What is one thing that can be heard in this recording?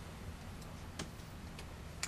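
Scissors snip once.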